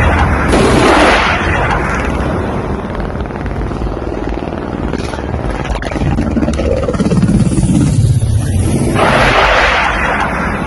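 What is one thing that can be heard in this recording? A helicopter's rotor thumps rapidly and steadily, close by, with a loud engine roar.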